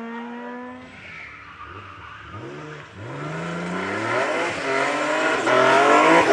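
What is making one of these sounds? A rally car engine roars louder as the car approaches.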